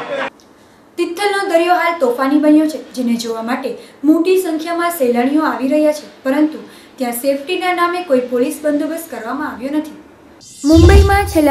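A young woman reads out the news clearly into a microphone.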